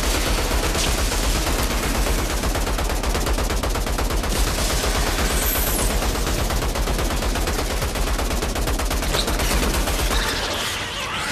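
A rapid-fire gun shoots in fast, steady bursts.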